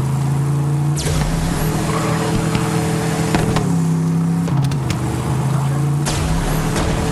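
Boost jets roar in sudden bursts.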